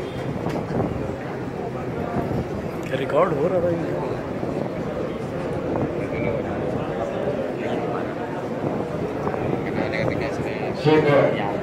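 A crowd of men talk and shout over each other close by.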